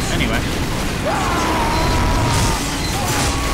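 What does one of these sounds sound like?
A crackling electric beam hums and sizzles.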